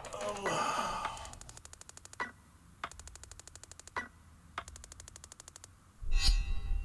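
A score counter ticks rapidly in a steady rhythm.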